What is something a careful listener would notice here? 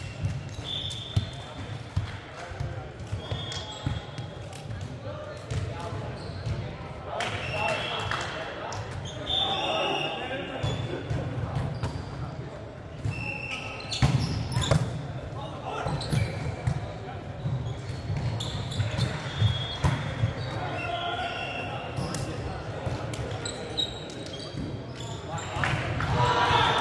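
Young men call out and talk during the game.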